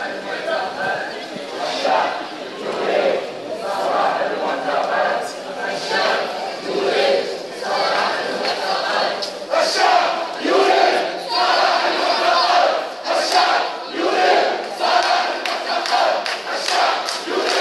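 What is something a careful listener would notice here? A large crowd of men and women chants slogans loudly outdoors in rhythm.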